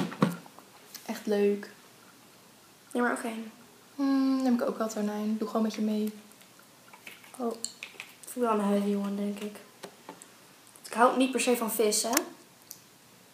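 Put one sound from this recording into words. A second young woman talks and answers nearby.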